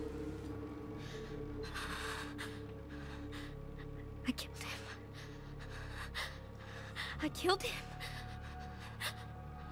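A young woman speaks softly in a shaky, tearful voice.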